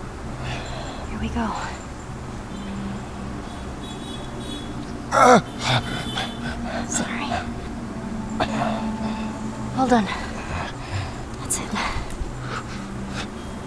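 A young girl speaks softly and gently, close by.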